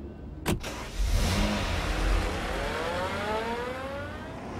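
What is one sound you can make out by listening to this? A car engine starts and revs up rising in pitch.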